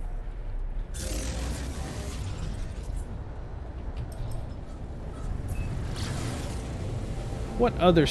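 A spaceship engine rumbles steadily.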